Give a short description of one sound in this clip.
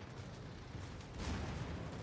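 Heavy naval guns fire with a deep boom.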